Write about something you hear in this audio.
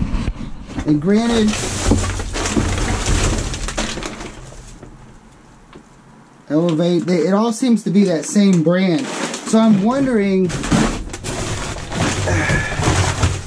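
Plastic bags and packaging rustle and crinkle as they are rummaged through.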